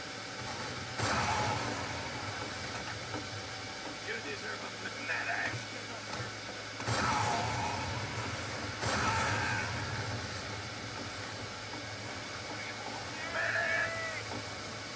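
Video game gunfire and blasts boom loudly through a speaker.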